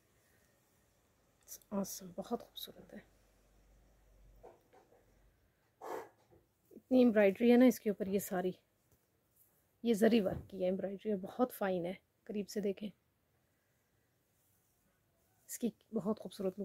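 Thin fabric rustles softly as hands handle it.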